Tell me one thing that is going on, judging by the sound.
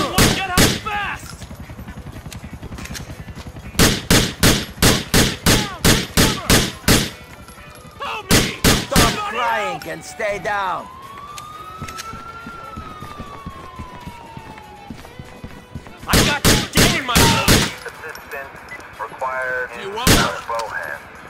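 Pistol shots ring out in quick bursts indoors.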